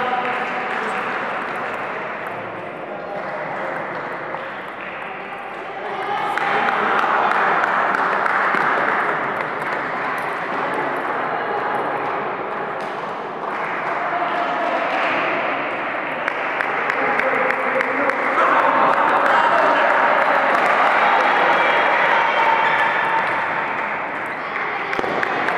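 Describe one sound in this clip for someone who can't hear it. A ping-pong ball clicks back and forth on a table.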